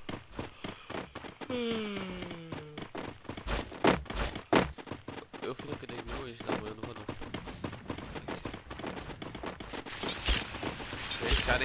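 Quick footsteps patter on grass.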